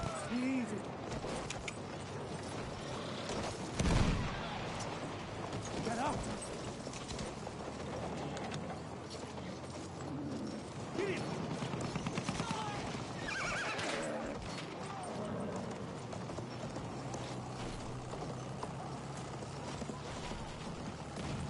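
Horse hooves thud steadily on the ground.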